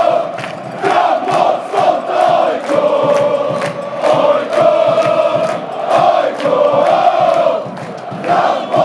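Many people clap in rhythm.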